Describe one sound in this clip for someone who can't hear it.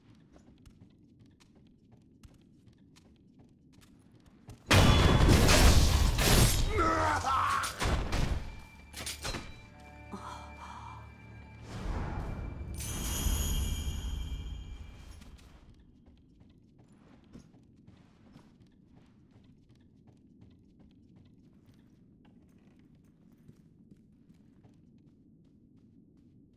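Soft footsteps patter on wooden floorboards.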